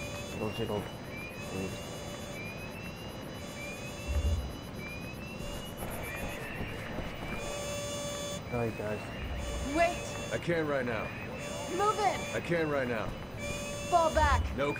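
A young man talks casually into a microphone.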